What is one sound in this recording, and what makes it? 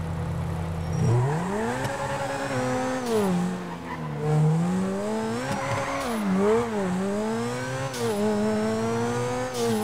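A sports car engine revs up and down as the car drives off.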